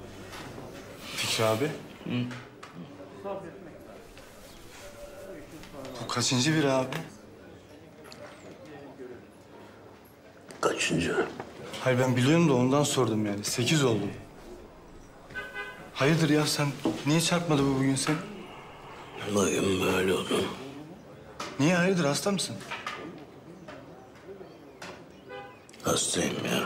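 A middle-aged man speaks in a low, weary voice close by.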